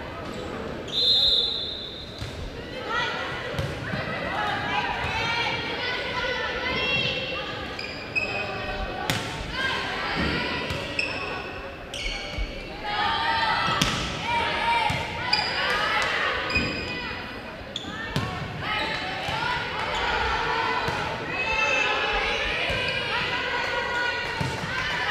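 A crowd chatters and cheers in the background.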